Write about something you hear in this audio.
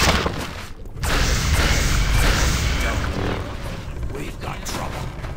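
A torch flame roars and crackles.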